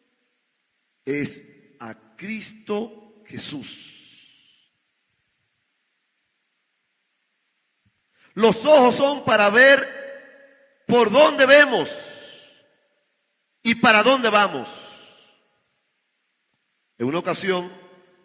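A man preaches with fervour into a microphone, in bursts separated by pauses.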